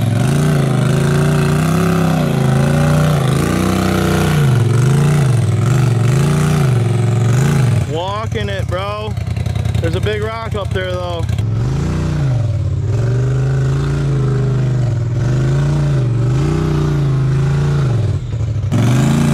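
An off-road vehicle's engine growls and revs unevenly as it climbs over rocks.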